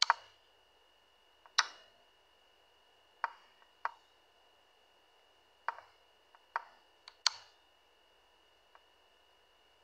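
Short, sharp wooden clicks of chess moves sound now and then.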